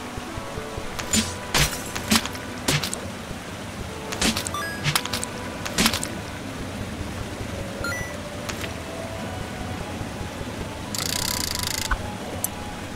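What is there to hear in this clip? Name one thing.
Video game sound effects thump and clatter in quick bursts.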